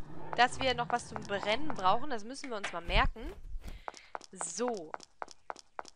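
A young woman talks with animation close to a headset microphone.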